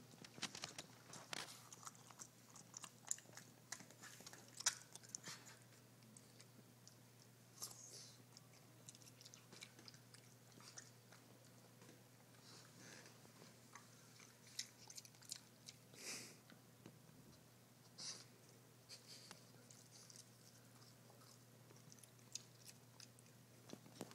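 A dog chews and crunches food up close, with wet smacking sounds.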